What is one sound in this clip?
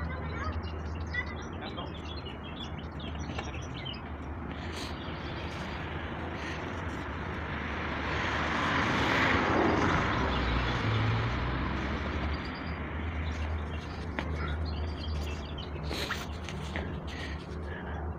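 Construction machinery rumbles steadily outdoors.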